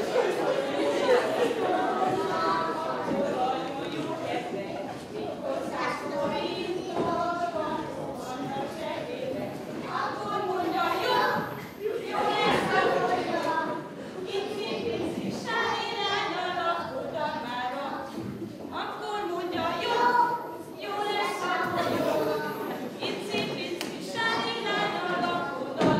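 A group of young children sing together in a room with some echo.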